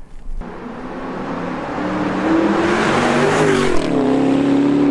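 A sports car approaches with a loud engine roar and speeds past.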